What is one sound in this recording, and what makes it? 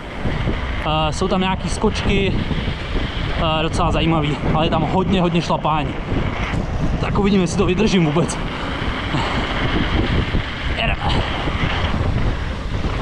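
Mountain bike tyres hum on asphalt.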